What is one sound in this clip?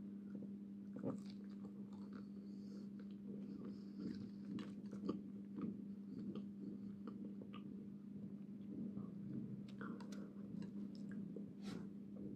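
A woman chews crunchy fries close to a microphone.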